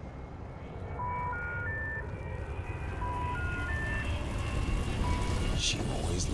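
A phone repeats a failed-call tone of beeps.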